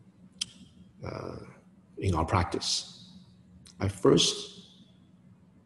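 A man speaks calmly and slowly into a nearby microphone.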